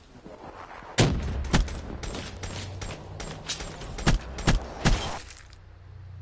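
Rapid gunshots crack in bursts.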